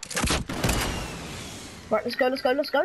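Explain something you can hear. A rifle fires two loud booming shots that echo away.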